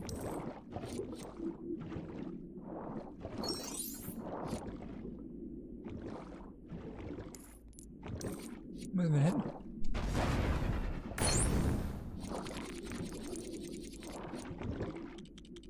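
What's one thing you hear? Water bubbles and swirls underwater.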